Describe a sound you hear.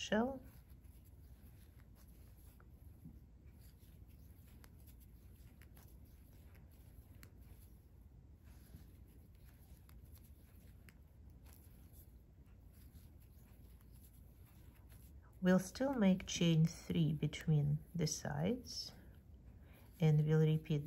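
A crochet hook softly works through yarn.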